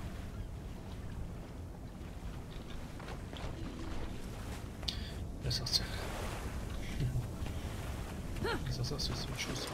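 Water splashes softly as someone wades through it.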